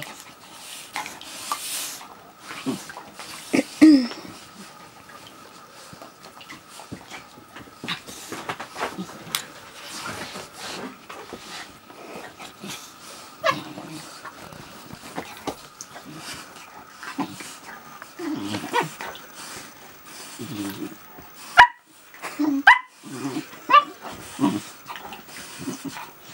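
Bedding rustles under the dogs.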